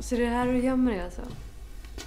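A young woman speaks nearby with high, drawn-out emphasis.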